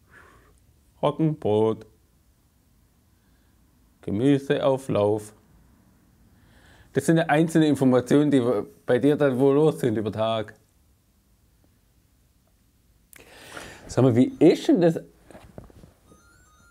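A young man speaks with animation through a lapel microphone, in short bursts.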